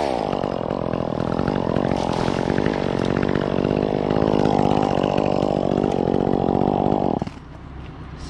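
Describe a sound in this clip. A chainsaw engine runs at high revs.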